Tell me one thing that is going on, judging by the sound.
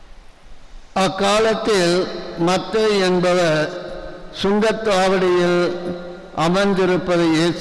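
An elderly man chants loudly through a microphone.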